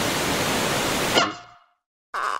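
Air hisses loudly out of a balloon.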